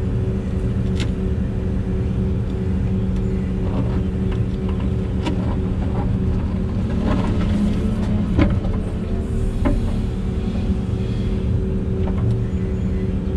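Soil and stones knock and clatter in a digger bucket.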